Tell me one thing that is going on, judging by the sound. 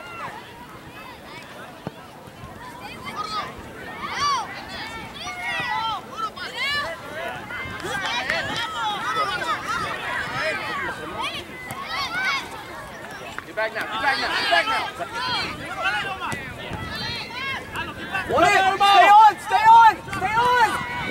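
Adults and children on the sideline shout and cheer outdoors, some way off.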